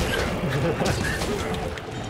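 A fiery explosion bursts with a roar.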